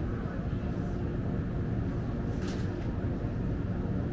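A plastic milk bottle rustles as a hand lifts it.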